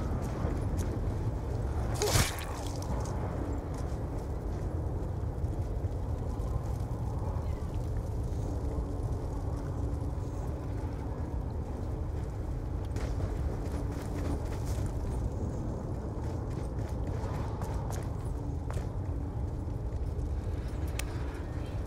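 Footsteps thud steadily on rough ground.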